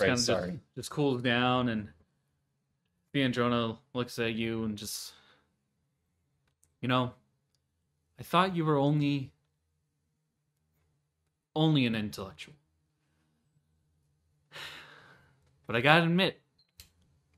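A man talks calmly over an online call, in short bursts with pauses.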